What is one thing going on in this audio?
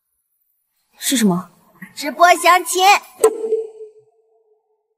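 A young woman asks a question calmly.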